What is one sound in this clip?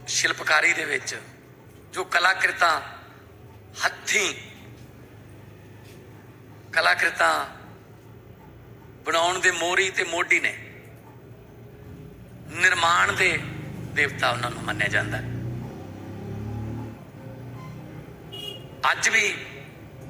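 A middle-aged man speaks into a microphone in short bursts, with pauses between phrases.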